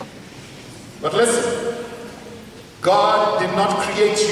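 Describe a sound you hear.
A man preaches loudly and with animation through a microphone and loudspeakers in an echoing hall.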